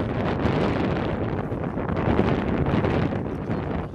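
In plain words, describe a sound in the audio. Horses gallop away over dirt in the distance.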